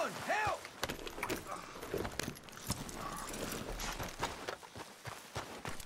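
Horse hooves clop on gravel.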